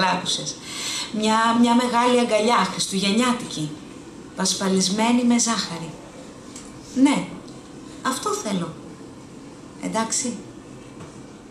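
A woman reads aloud calmly into a microphone, close by.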